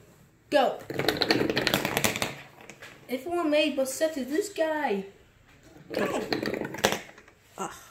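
Small balls clatter and bounce down a board of plastic cups.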